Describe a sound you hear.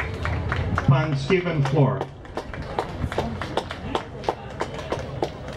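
A crowd of people murmurs and talks outdoors.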